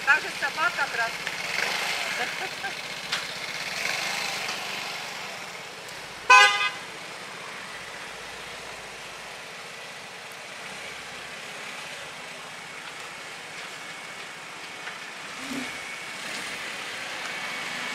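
A scooter engine idles with a low, steady hum.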